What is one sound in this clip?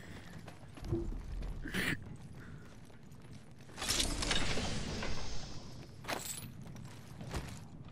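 Footsteps clank quickly on a metal walkway.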